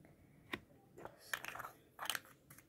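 Hands fiddle with a small plastic object, making light clicks.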